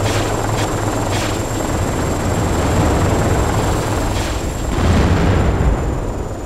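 A helicopter engine and rotor drone steadily and loudly.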